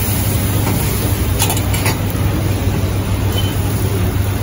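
A metal spatula scrapes and taps against a griddle.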